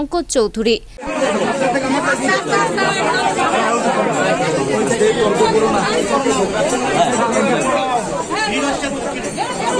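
A crowd of men and women talk and call out all around in an echoing room.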